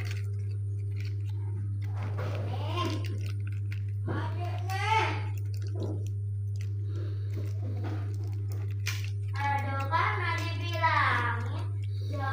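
A plastic sauce packet crinkles and tears in someone's hands.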